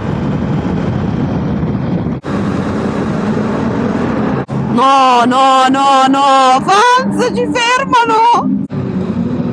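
A motorcycle engine roars and revs, echoing loudly in a tunnel.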